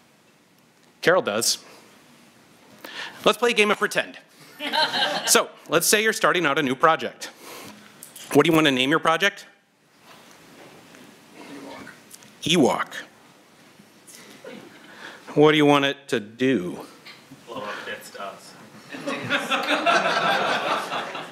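A young man speaks calmly into a microphone.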